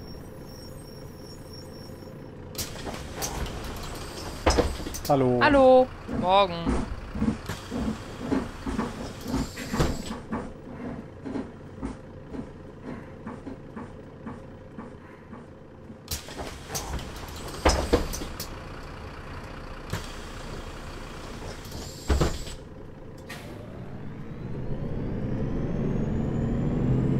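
A bus engine idles with a low steady rumble.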